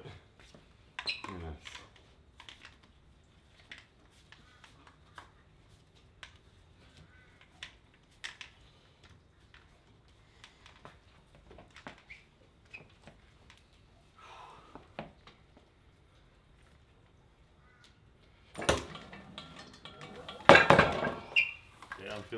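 A metal handle clinks and rattles against a cable.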